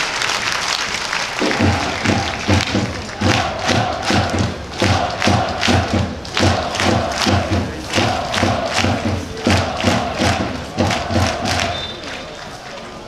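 A large crowd of supporters chants loudly in unison in a big open stadium.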